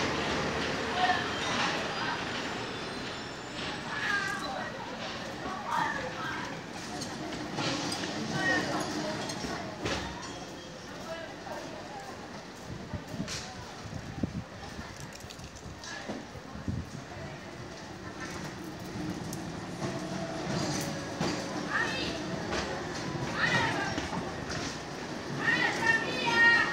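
People chatter nearby outdoors, with voices of men and women mixing.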